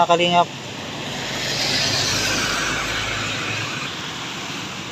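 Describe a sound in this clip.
A motor tricycle drives past on a wet road.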